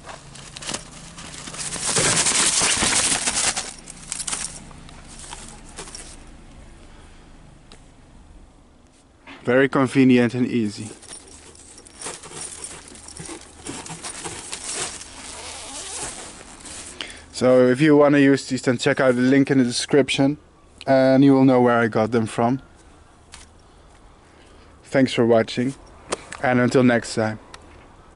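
Thin mesh fabric rustles as it is handled.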